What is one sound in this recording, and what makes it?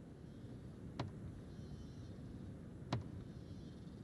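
A car door clicks and swings open.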